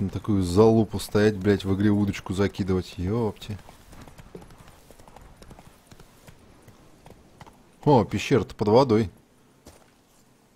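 A horse gallops with steady hoofbeats.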